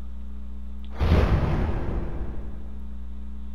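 A gunshot booms and echoes in a large hall.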